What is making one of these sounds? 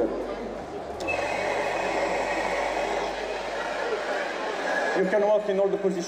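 A gas torch roars with a steady hissing flame.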